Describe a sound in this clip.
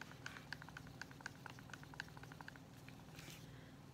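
A stick scrapes and clicks against the inside of a plastic cup while stirring paint.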